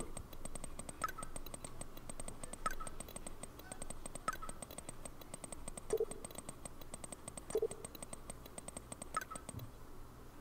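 A phone gives short chimes as text messages arrive.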